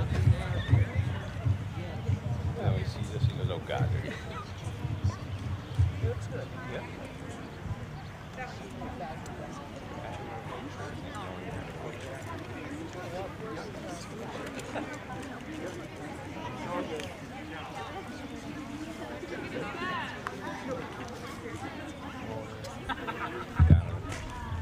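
A crowd of people chatter outdoors in the distance.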